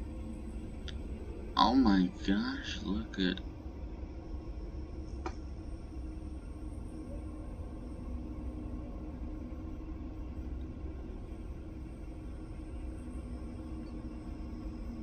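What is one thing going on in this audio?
A low underwater rumble hums steadily.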